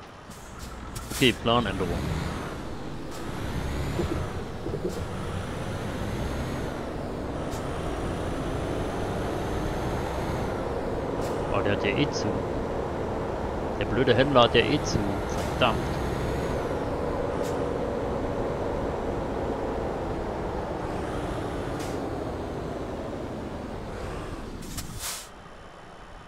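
A truck engine rumbles and revs as it drives.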